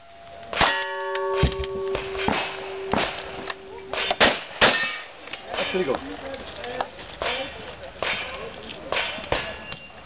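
A shotgun's action racks with metallic clacks.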